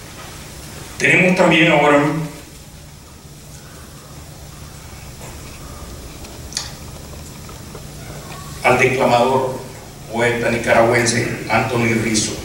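A man speaks into a microphone in a calm, measured way, with pauses.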